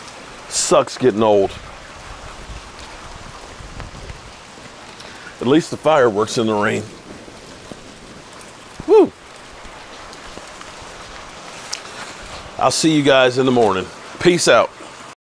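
A man talks nearby in short bursts.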